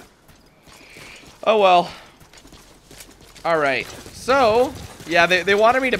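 Footsteps patter quickly over dirt.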